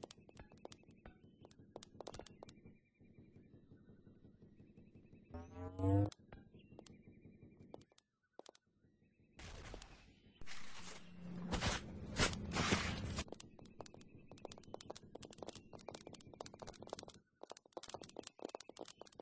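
Game footsteps tap quickly on a hard floor.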